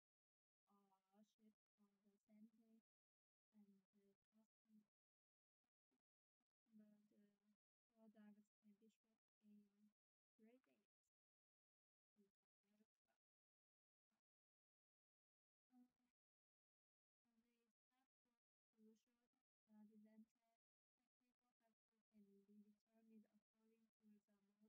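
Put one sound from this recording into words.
A young woman speaks calmly and clearly into a microphone, close by.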